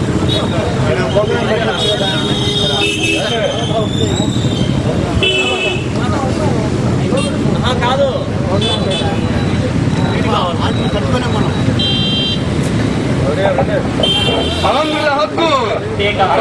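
A crowd of men talk and chatter nearby.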